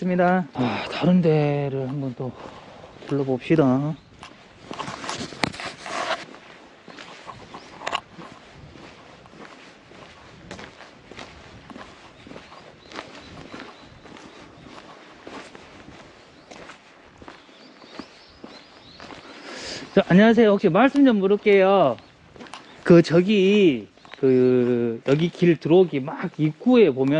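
A man talks calmly close to the microphone.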